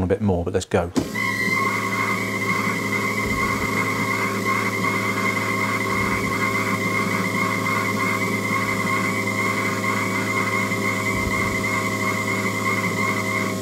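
Fuel injectors click rapidly and evenly.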